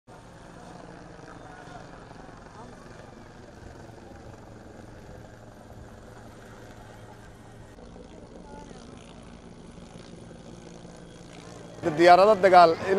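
A helicopter drones overhead with a steady thudding rotor.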